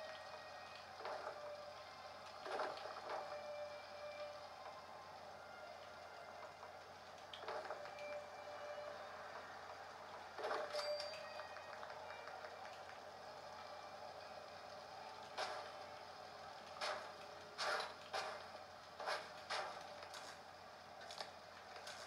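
Short game menu clicks and chimes sound through a loudspeaker as selections change.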